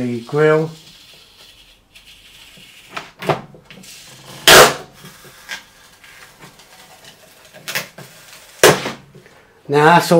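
A plastic sticker peels off with a crackle.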